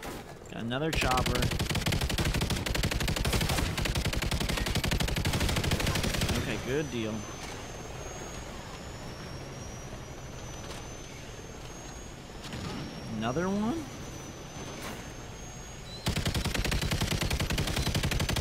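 A mounted machine gun fires in rapid, heavy bursts.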